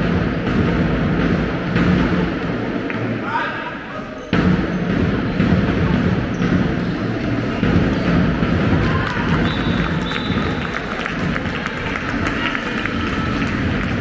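Young boys shout to each other in a large echoing hall.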